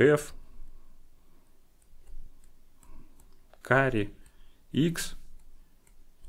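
A man speaks calmly and close into a microphone, in short phrases.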